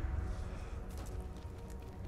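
Fire crackles nearby.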